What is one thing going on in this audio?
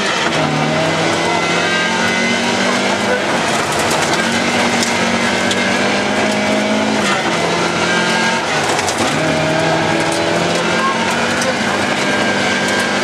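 Tyres crunch and rattle over gravel.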